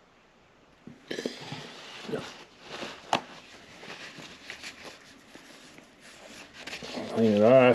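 A paper towel rustles and crinkles close by.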